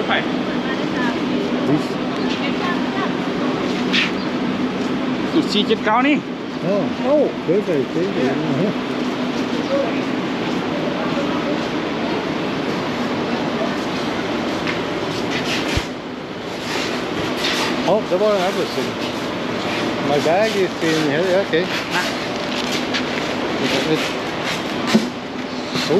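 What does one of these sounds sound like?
A bus engine idles steadily nearby.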